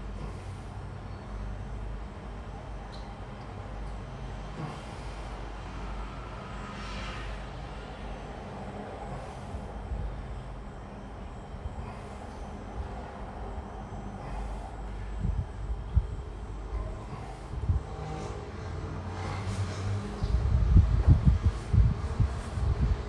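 A man breathes heavily while exercising.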